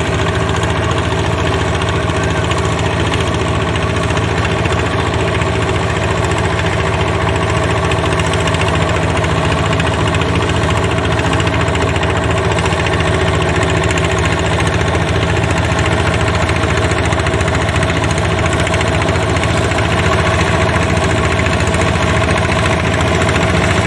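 A small engine chugs steadily close by.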